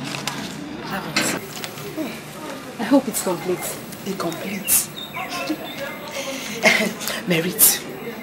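A woman speaks in a low, worried voice, close by.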